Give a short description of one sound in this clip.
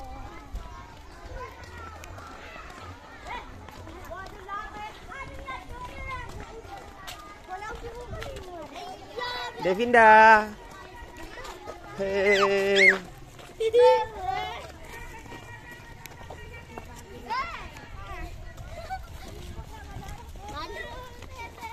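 Children chatter and call out loudly nearby.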